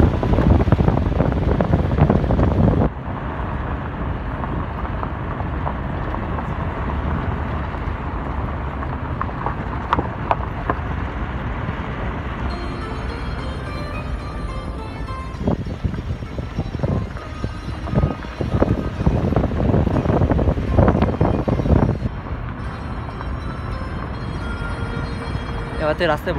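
A car drives along a rough stony road, heard from inside the car.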